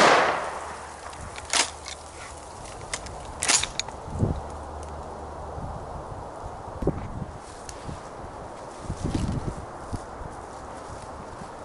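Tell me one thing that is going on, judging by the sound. Wind blows across the microphone outdoors.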